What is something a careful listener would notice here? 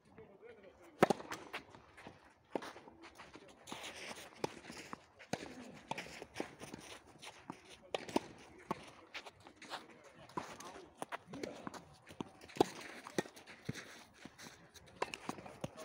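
Tennis balls are struck with rackets, popping sharply back and forth outdoors.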